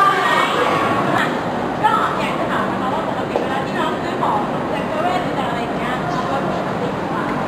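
A crowd murmurs and chatters in an echoing hall.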